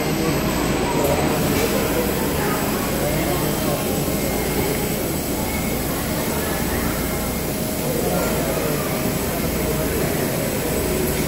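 A conveyor machine hums and rattles steadily.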